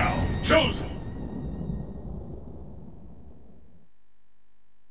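A loud booming game sound effect strikes and slowly rings out.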